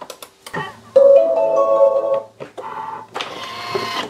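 A kitchen machine's touchscreen beeps.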